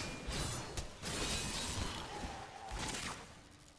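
A lightning bolt strikes with a sharp crack.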